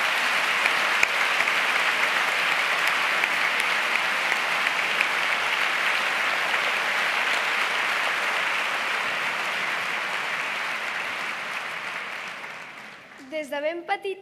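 An audience applauds steadily in a large hall, then the applause fades.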